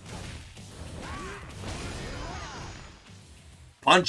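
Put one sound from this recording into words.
Heavy blows land with a burst of roaring flame.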